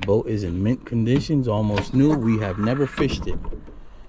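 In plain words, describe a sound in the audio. A hatch latch clicks open.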